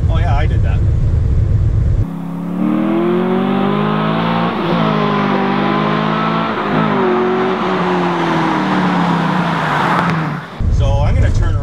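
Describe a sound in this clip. A car engine rumbles loudly from inside the car.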